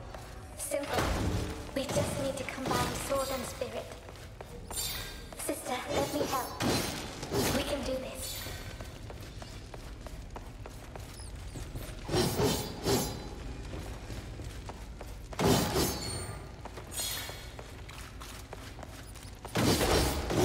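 A sword swooshes through the air and strikes with a burst.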